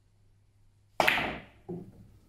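A cue strikes a billiard ball with a sharp click.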